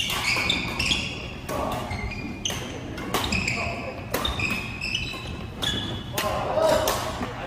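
Shoes squeak sharply on a wooden court floor.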